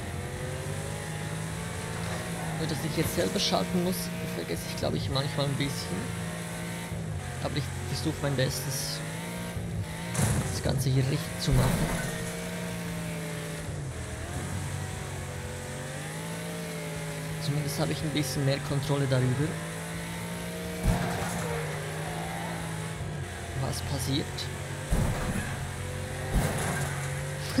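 Tyres skid and scrape on dirt.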